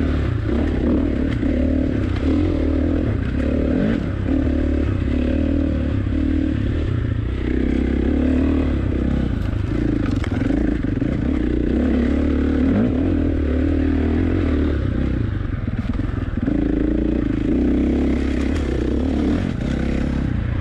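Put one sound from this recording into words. Tyres crunch and slip over mud and loose stones.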